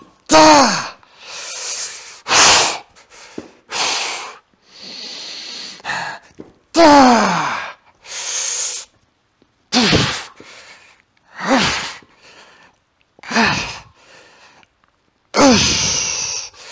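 A man breathes out hard and fast.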